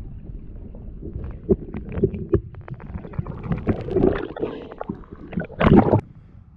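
Water gurgles and knocks, heard muffled underwater.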